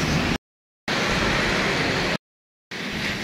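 Fountain jets splash into a pool of water.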